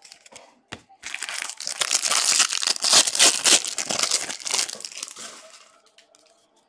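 A plastic wrapper crinkles and tears loudly.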